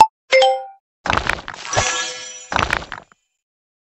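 Game dice rattle as they roll.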